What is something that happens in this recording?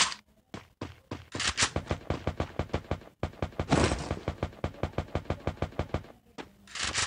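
Footsteps thud quickly and evenly on wooden boards.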